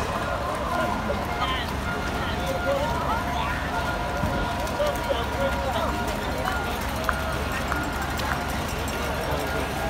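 Runners' footsteps patter on a wet street.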